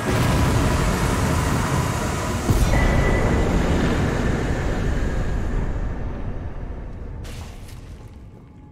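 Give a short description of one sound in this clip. A deep, heavy rumble fills the space and slowly fades away.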